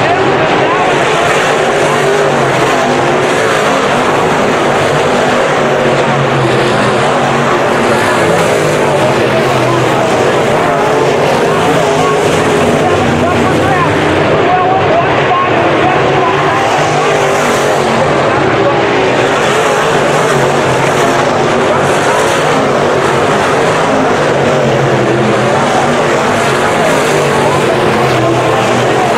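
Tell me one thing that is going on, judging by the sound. Race car engines roar loudly around a dirt track.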